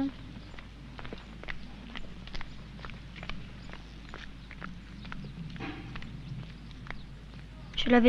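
Footsteps tap on a paved road.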